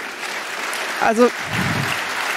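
A man speaks through a microphone in a large hall.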